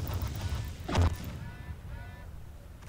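A laser weapon fires with a sharp buzz.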